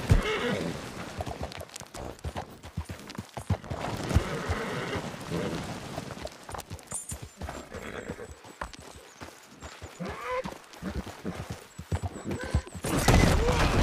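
A horse's hooves clop steadily on rock.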